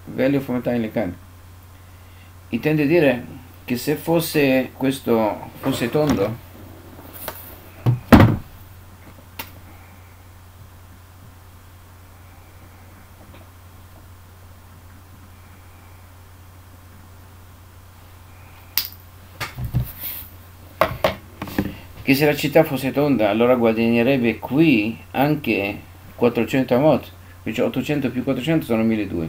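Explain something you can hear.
An elderly man speaks calmly and steadily, close to a microphone.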